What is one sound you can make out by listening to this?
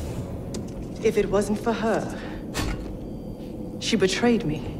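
A woman speaks coldly and tensely, close by.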